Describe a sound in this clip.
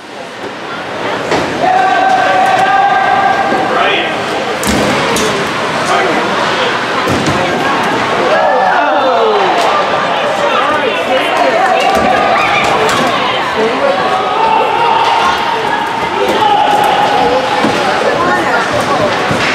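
Skates scrape and hiss across the ice in a large echoing rink.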